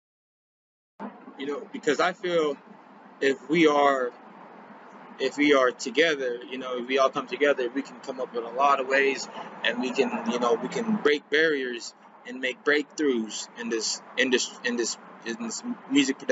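A young man talks calmly close to the microphone.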